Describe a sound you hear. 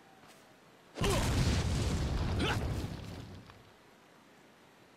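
A loud explosion bursts and rumbles away.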